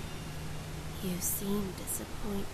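A young woman speaks coldly and quietly, close by.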